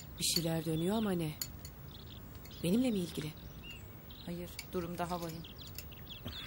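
A woman speaks with feeling.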